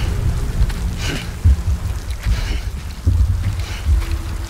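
Boots crunch on rocky ground in slow footsteps.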